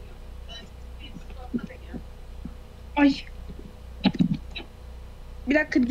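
A young woman speaks in short bursts, close to a microphone.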